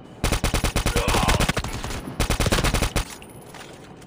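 A rifle fires in rapid bursts at close range.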